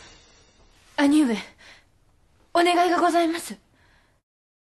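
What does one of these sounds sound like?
A young woman speaks softly and calmly nearby.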